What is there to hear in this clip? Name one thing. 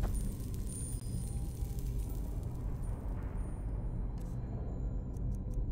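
Magical flames hum and crackle softly.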